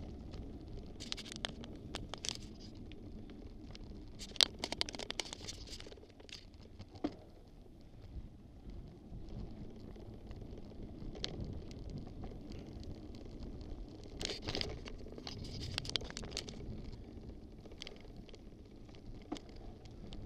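Twigs and gravel click and snap under bicycle wheels.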